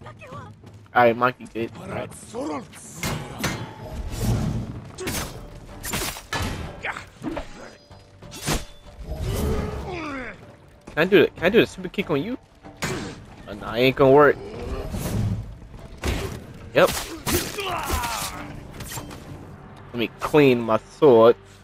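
Men shout and grunt while fighting.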